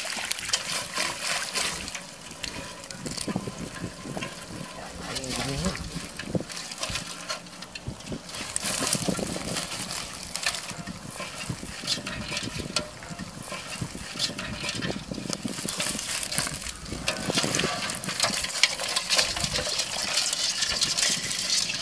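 Water splashes and sloshes as a net is shaken in shallow water.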